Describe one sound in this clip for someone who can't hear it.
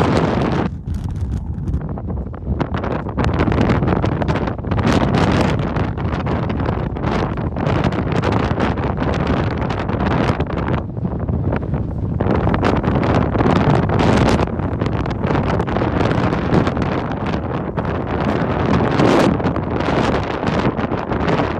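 Strong wind gusts across open floodwater outdoors.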